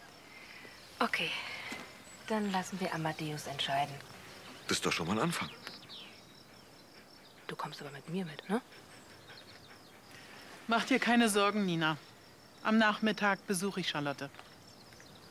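A young woman speaks calmly and cheerfully close by.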